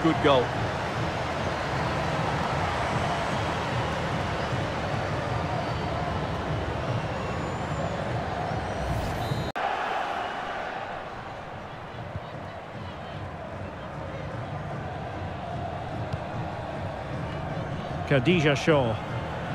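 A large crowd roars and cheers in a stadium.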